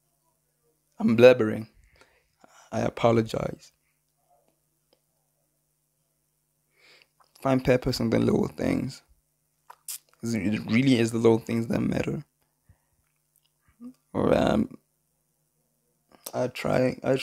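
A young man speaks close into a handheld microphone in short bursts, with pauses between.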